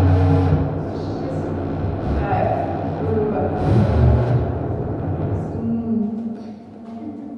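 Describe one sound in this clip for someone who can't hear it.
Electronic music with a deep droning bass plays loudly through loudspeakers, then cuts off.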